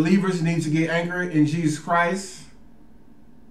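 A man speaks calmly and closely into a microphone.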